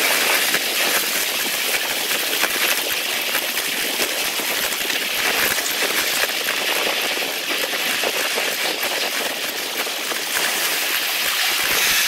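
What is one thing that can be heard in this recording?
Wheels click over rail joints in a quick rhythm.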